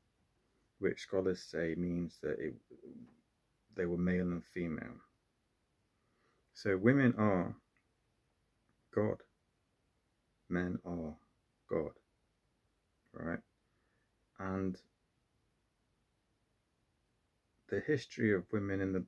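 A man speaks calmly and close by, in short phrases with pauses.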